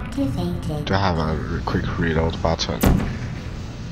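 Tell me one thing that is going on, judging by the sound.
An energy gun fires with a sharp zap.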